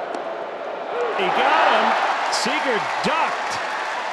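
A large crowd cheers loudly, then settles.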